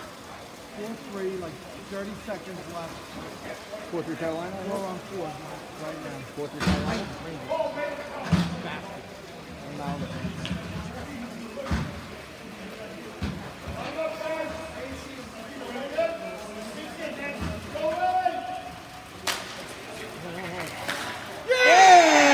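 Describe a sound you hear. Spectators and young players shout and call out outdoors.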